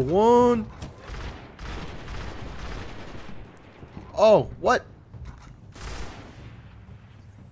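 Rapid gunfire crackles and booms.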